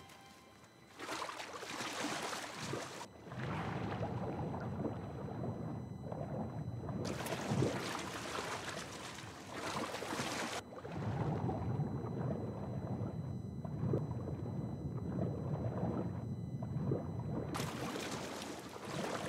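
Water rushes and bubbles around a swimmer underwater.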